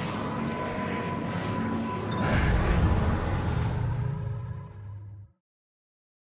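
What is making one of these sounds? A loud blast of energy roars and rumbles.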